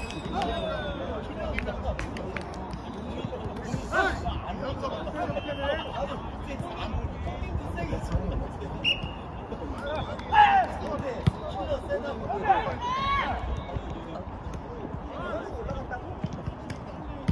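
Young men shout and call out to each other across an outdoor court.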